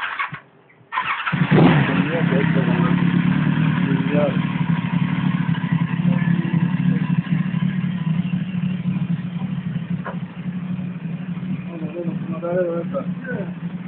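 A motorcycle engine starts and idles with a steady low rumble close by.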